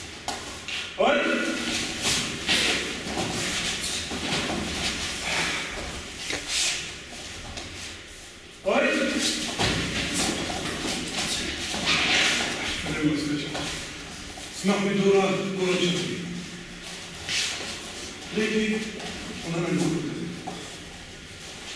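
A man shouts commands loudly in an echoing room.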